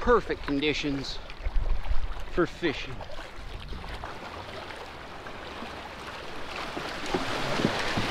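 Water splashes and laps against a kayak.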